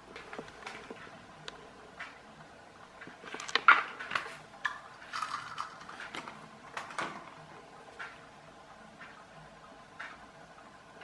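Small plastic dancing toys tick softly as they rock back and forth.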